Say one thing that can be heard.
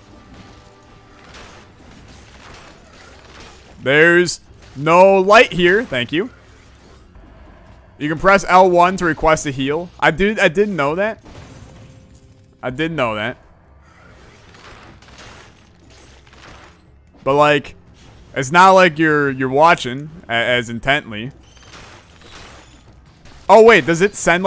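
Weapons clash and magic blasts crackle in a fast fight.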